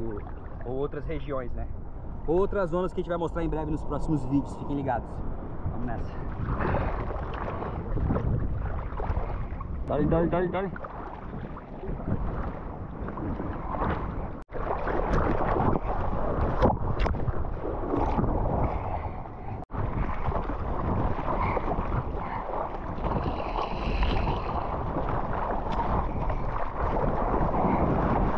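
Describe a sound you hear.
Seawater sloshes and splashes around the microphone.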